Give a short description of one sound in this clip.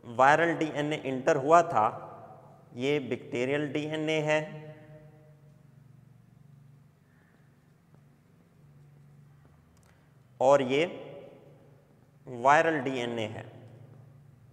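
A man speaks calmly and clearly into a close microphone, in short phrases with pauses.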